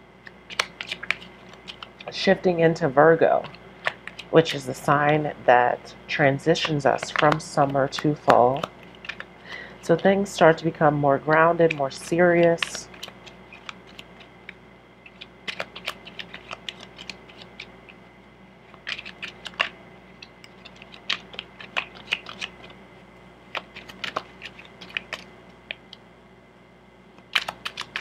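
Playing cards riffle and snap as they are shuffled by hand.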